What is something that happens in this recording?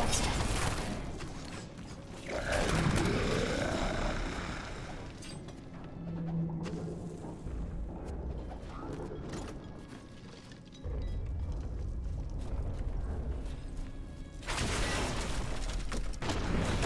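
Fiery spells whoosh and crackle in a game battle.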